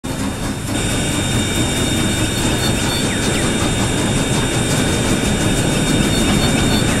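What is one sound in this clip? A steam locomotive chuffs steadily as it moves along the track.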